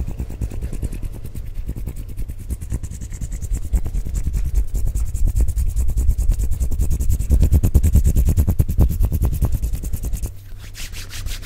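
Hands rub and brush close against a microphone with deep muffled rumbling.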